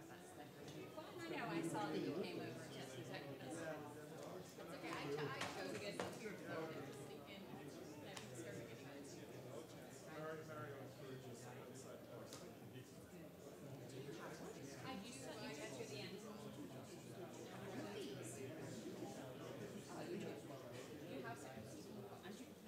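Several men and women chat at once in a room, a murmur of voices.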